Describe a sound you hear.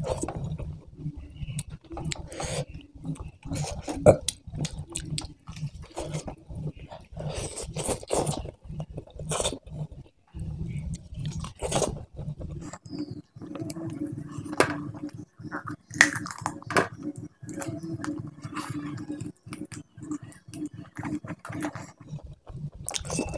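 Fingers squish and mix food on a metal tray.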